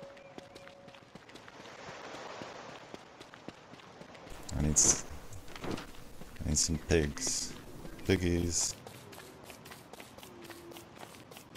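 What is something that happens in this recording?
Footsteps patter quickly on dry ground.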